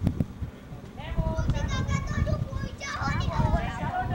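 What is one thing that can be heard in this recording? Young people call out and talk outdoors at a distance.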